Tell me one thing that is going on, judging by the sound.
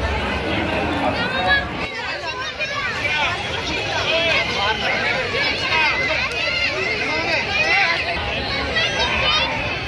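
A crowd chatters in a lively murmur outdoors.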